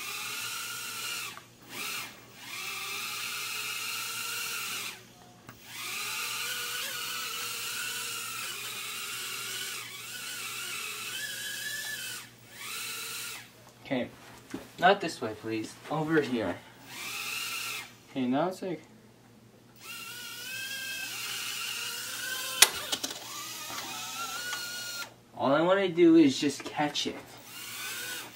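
A tiny toy drone buzzes with a high, wavering whine.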